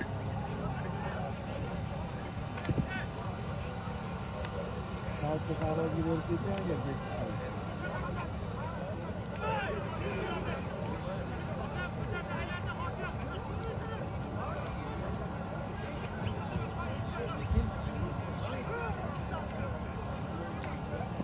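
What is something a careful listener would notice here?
A large outdoor crowd of men shouts and chatters.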